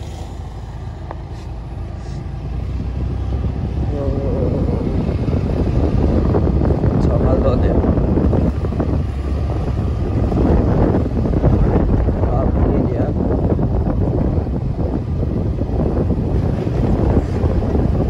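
A motorcycle rides off up the road, its engine droning.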